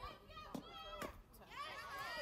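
A softball smacks into a catcher's mitt.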